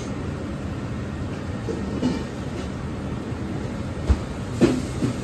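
A wooden steamer lid knocks as it is lifted off.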